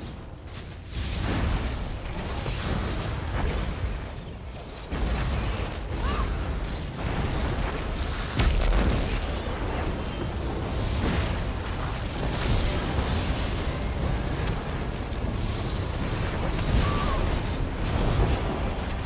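Heavy rumbling booms roll through a battle.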